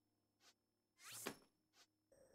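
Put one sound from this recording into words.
A soft whooshing chime sounds as a game map switches layers.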